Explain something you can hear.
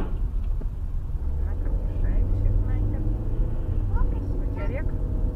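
A truck rumbles past close by.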